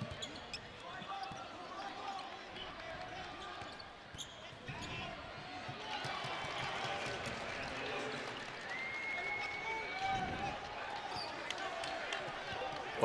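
A crowd in a large echoing arena murmurs and cheers.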